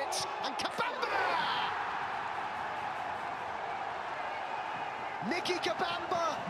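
A crowd cheers loudly in an open stadium.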